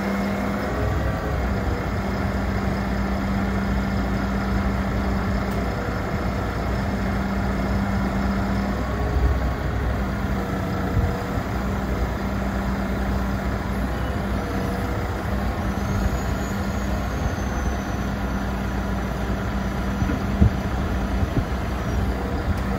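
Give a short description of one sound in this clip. A hydraulic crane whines as its arm moves.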